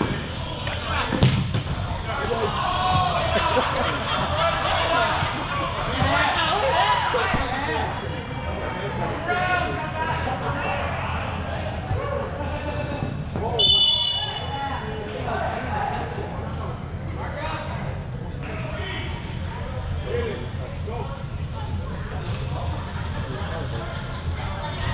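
Players shout and call out across a large echoing indoor hall.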